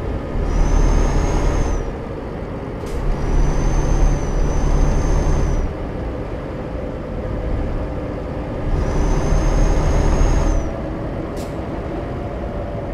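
A truck engine rumbles steadily, swelling louder in bursts with a high whine.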